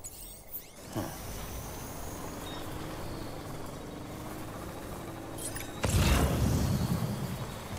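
A vehicle engine starts and hums steadily.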